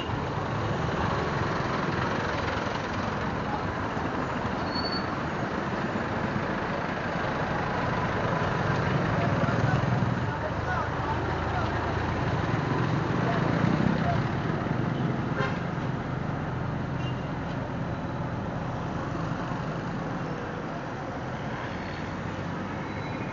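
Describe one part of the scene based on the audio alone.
A vehicle engine rumbles steadily close by.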